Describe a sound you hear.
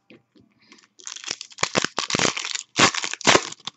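Foil wrappers crinkle and tear as a pack is ripped open.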